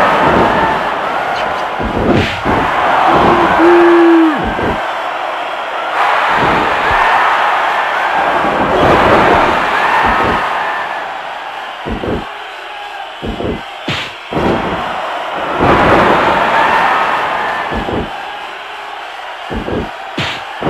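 Heavy thuds of punches and body slams land repeatedly.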